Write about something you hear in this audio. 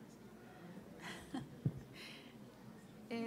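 A middle-aged woman laughs softly.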